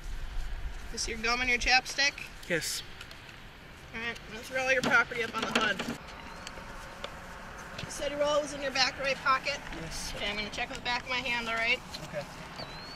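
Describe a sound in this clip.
A young woman speaks calmly and firmly nearby, outdoors.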